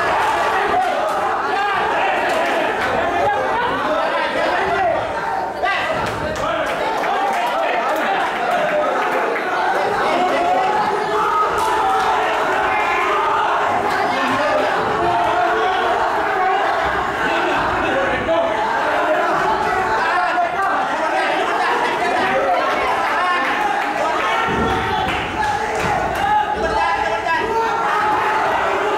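A crowd of spectators chatters and shouts in an echoing hall.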